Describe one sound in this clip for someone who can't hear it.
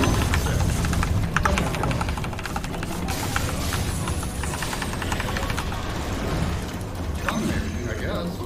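Video game battle effects crackle and blast.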